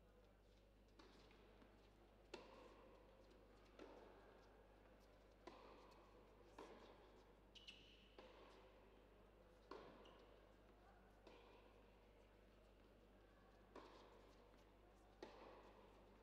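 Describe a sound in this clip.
A tennis ball bounces repeatedly on a hard court.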